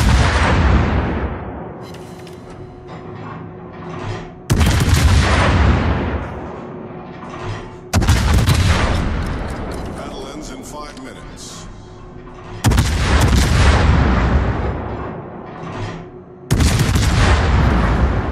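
Heavy naval guns fire in loud booming salvos that rumble and fade.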